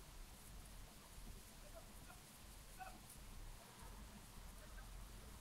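Braided hair rustles softly.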